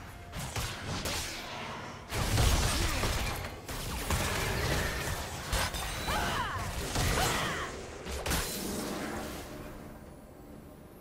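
Game spells blast and crackle in a fight.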